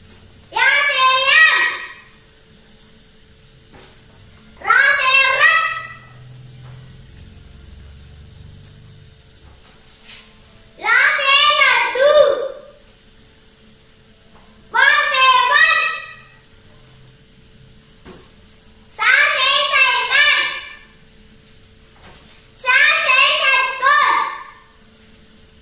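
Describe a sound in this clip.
A young boy reads out words loudly and clearly, in short bursts with pauses between them.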